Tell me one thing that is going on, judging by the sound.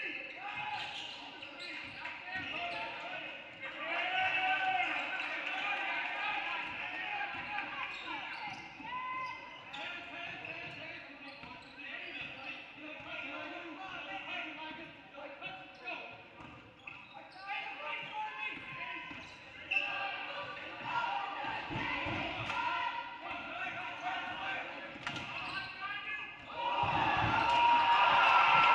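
A crowd of spectators murmurs and cheers in an echoing hall.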